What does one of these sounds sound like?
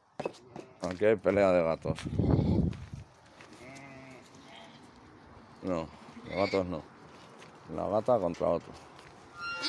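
Sheep bleat loudly nearby, again and again.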